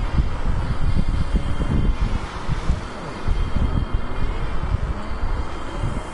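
Tyres screech as a car drifts round a corner.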